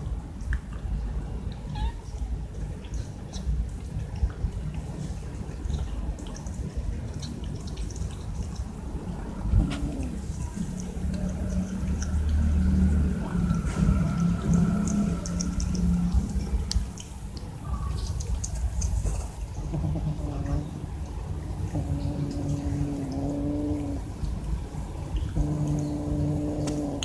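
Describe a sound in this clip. Cats chew and lick at food on the ground.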